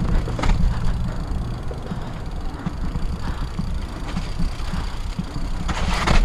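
Bicycle tyres roll and crunch over a muddy dirt trail.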